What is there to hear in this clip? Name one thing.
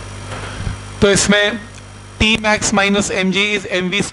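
A man speaks clearly and calmly, as if explaining.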